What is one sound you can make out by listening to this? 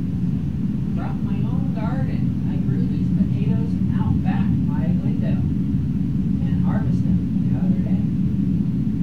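A man speaks casually, close to a microphone.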